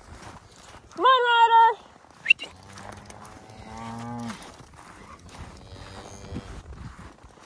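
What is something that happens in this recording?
Cattle moo loudly nearby, outdoors.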